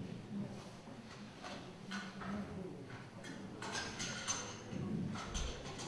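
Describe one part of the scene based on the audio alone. Items knock and clatter on a table close by.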